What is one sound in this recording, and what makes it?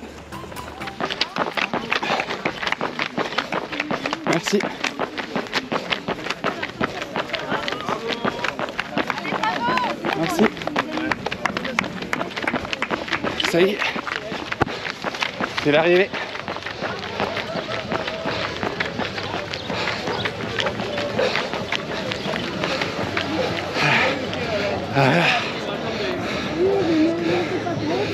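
A runner's shoes slap on asphalt.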